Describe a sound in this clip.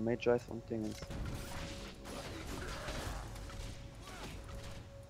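Game spells crackle and whoosh during a fight.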